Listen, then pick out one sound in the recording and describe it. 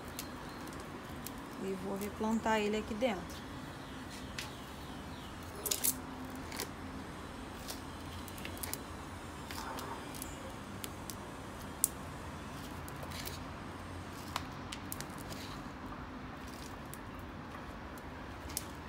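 Hands rustle dry plant roots and crumble soil.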